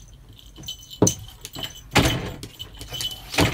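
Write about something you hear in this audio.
A metal lever door handle rattles as a cat pulls on it.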